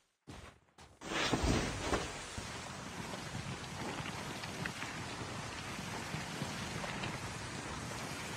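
A board hisses steadily as it slides over snow.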